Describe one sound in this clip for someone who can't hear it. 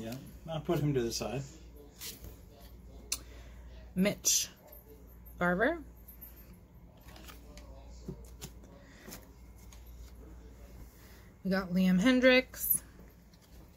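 Trading cards slide and rustle softly as they are flipped by hand.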